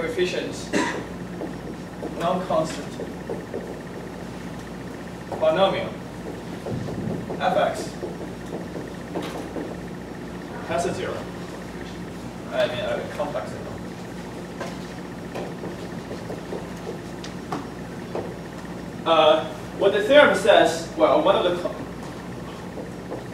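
A young man speaks calmly, pausing often.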